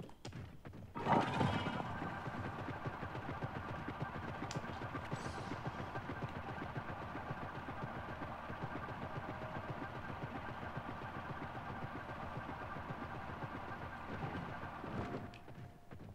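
A flying machine's engines whir and roar steadily.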